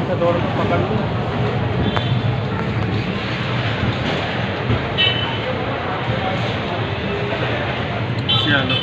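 A crowd murmurs in a busy, echoing hall.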